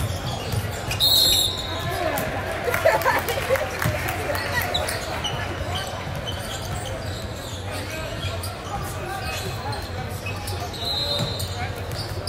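A referee blows a sharp whistle.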